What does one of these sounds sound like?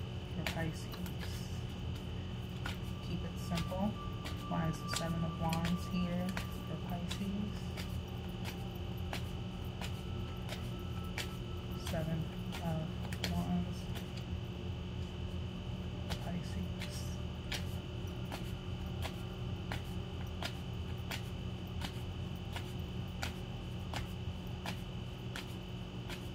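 Playing cards slap and flick as a deck is shuffled.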